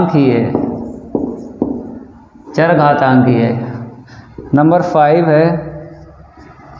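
A young man speaks clearly and with animation, close to a microphone.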